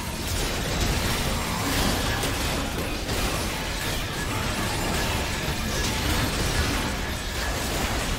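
Video game spell and combat effects crackle and burst rapidly.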